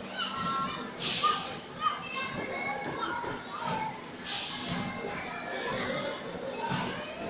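Young children shriek and squeal playfully nearby.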